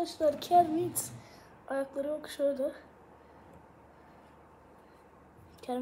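A young boy speaks in a high, playful puppet voice close by.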